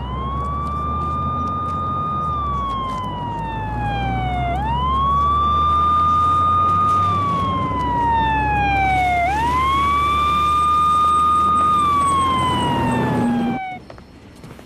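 An ambulance siren wails, rising and falling.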